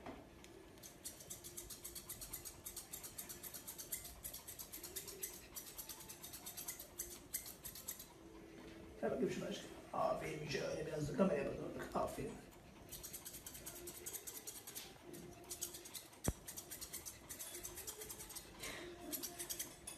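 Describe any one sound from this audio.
Scissors snip quickly and repeatedly through fur.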